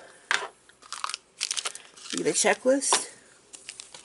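Plastic packaging crinkles and rustles in a hand.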